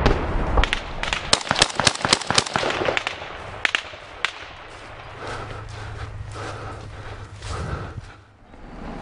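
Rifle shots crack in rapid bursts outdoors.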